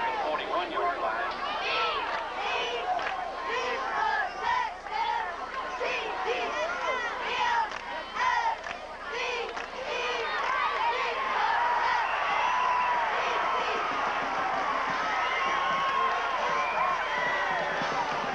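A large crowd of spectators shouts and cheers outdoors, swelling louder as a play unfolds.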